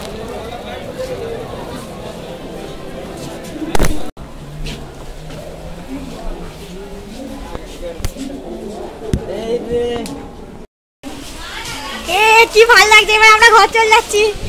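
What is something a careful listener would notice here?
Several people talk nearby.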